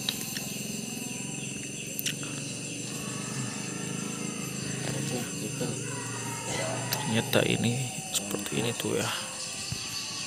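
Small plastic parts click and rattle as a wire connector is handled.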